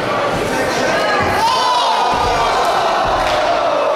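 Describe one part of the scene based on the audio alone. A body thuds heavily onto a hard floor.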